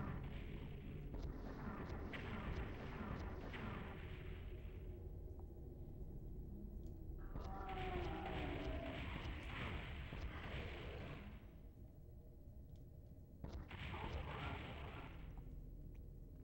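Gunshots and explosions from a video game boom.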